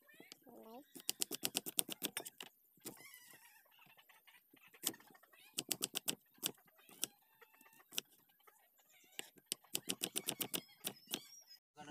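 A knife chops quickly on a cutting board.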